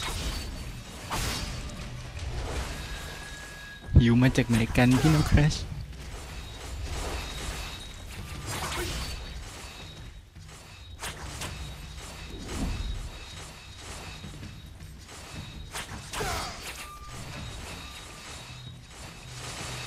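Sword strikes and magic spell effects clash and whoosh in a fight.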